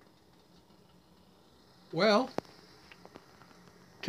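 A metal kettle clanks down onto a metal stove.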